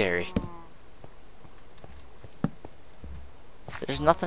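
Footsteps tread lightly on stone.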